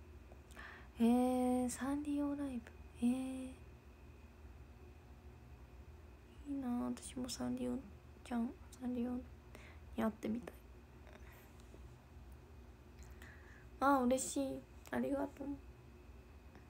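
A young woman speaks casually and close to a microphone, in short bursts with pauses.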